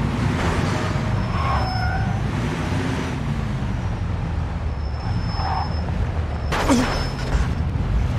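Car tyres squeal on a tight turn.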